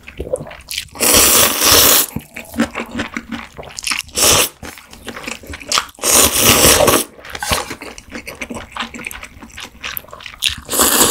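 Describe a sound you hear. A woman slurps noodles loudly close to a microphone.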